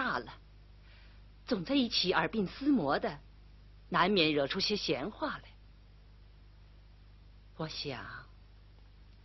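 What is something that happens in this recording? A middle-aged woman speaks calmly, close by.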